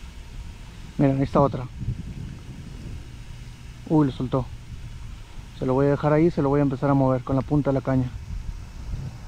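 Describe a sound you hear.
A man speaks close by, in short calm bursts.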